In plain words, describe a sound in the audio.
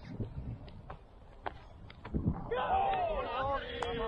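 A cricket bat knocks a ball far off.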